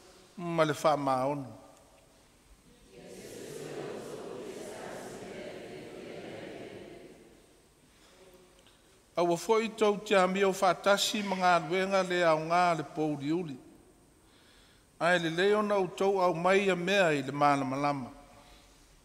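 An elderly man reads aloud through a microphone with echo.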